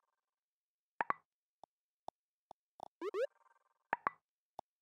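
Short electronic clicks tick now and then.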